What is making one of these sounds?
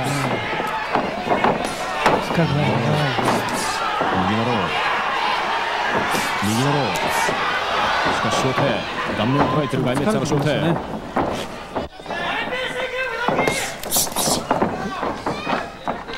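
A large crowd murmurs and calls out in an echoing hall.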